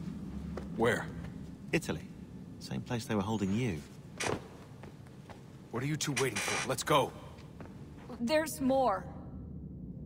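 A young man speaks calmly in short lines.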